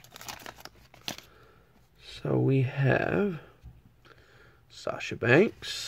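Trading cards shuffle and slide against each other.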